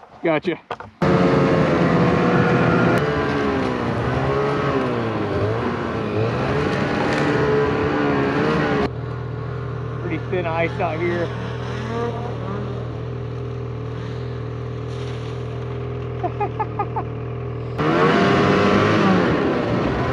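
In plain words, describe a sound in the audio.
A snowmobile engine roars and revs up and down.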